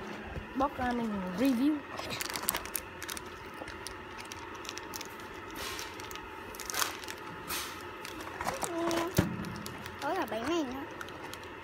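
Packaging crinkles and rustles in a hand.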